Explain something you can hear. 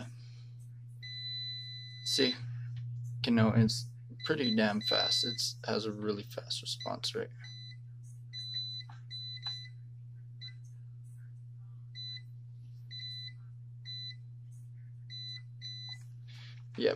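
An electronic meter beeps in short bursts.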